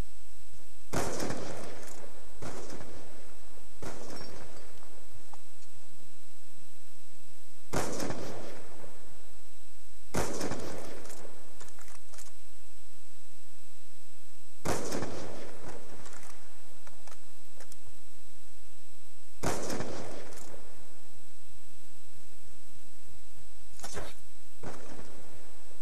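Sniper rifle shots crack loudly with a booming echo, one every few seconds.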